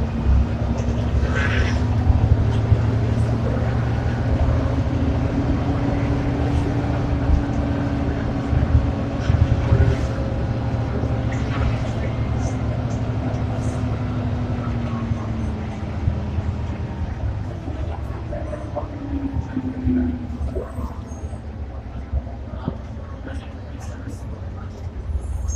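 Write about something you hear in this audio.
A bus engine drones low and steady inside the cabin.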